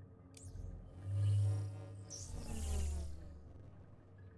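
A deep electronic whoosh swells and fades.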